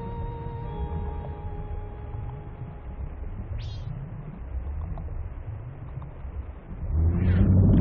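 Bubbles gurgle softly in water.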